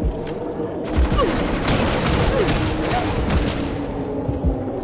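Electric blasts crackle and fizz.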